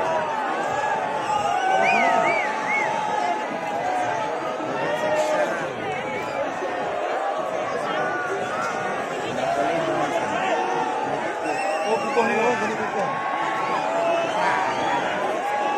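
A large crowd outdoors chatters loudly.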